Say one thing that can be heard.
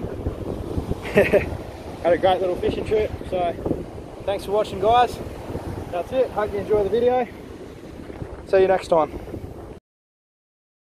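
Sea waves crash and surge against rocks outdoors.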